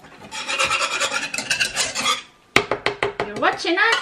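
A whisk clinks against a metal pot.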